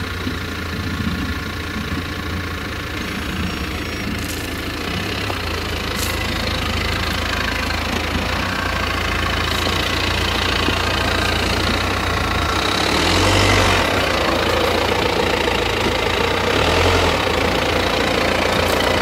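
A harvester's engine drones steadily nearby.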